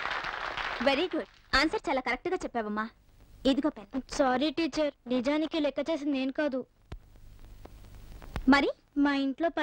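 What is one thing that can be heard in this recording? A woman speaks calmly and warmly.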